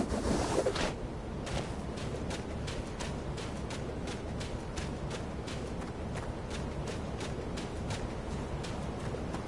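Footsteps patter quickly on sand.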